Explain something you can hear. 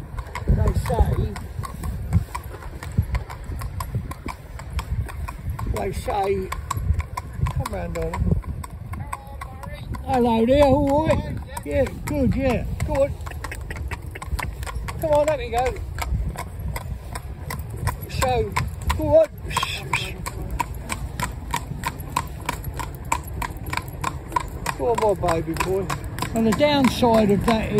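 A horse's hooves clop steadily on a paved road.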